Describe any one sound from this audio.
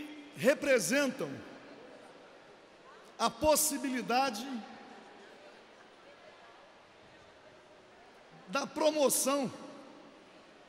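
An elderly man speaks into a microphone in short, measured bursts, in a large echoing hall.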